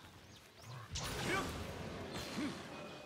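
A magic bolt crackles and zaps down from the sky.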